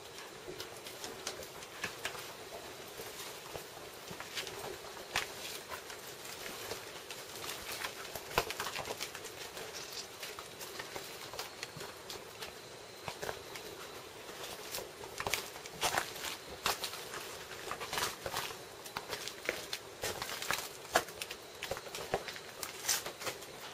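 Footsteps crunch and snap over burnt debris.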